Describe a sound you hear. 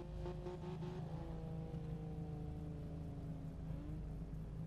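A car engine idles.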